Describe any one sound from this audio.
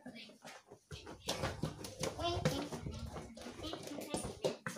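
A child's footsteps thud on a wooden floor.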